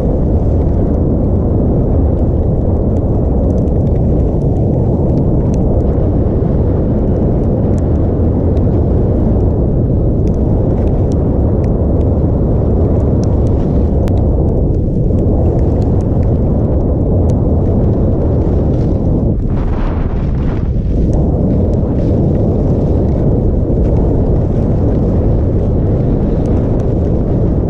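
Wind roars steadily against a fast-moving skier.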